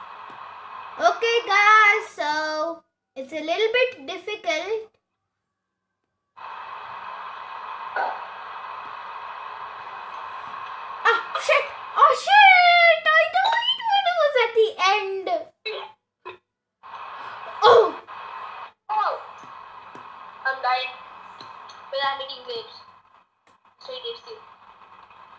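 A young boy talks with animation over a video call.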